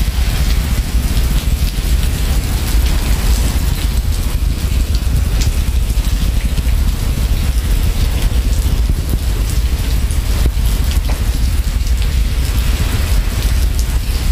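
A swollen river flows and rushes.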